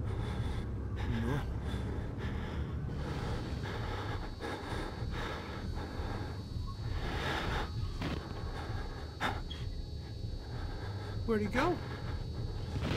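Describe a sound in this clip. A man speaks quietly into a close microphone.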